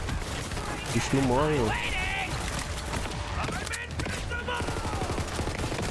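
Gunfire from a video game crackles rapidly.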